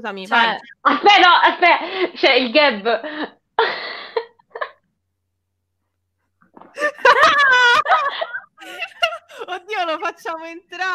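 Young women talk and laugh with animation over an online call.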